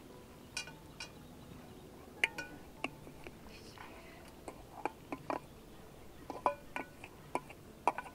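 Food scrapes and drops into a metal pot.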